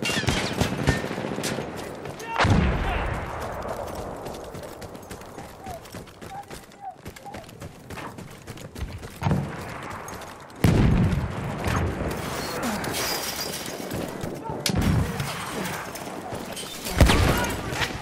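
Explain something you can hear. Gunshots crack and echo.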